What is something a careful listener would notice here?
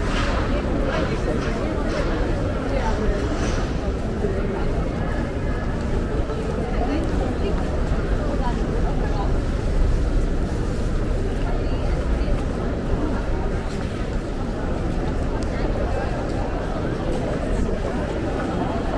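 A crowd murmurs outdoors in the distance.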